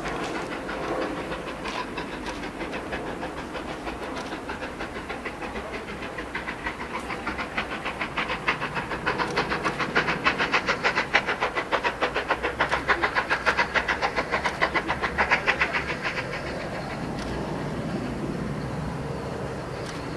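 A steam locomotive chuffs rapidly as it approaches.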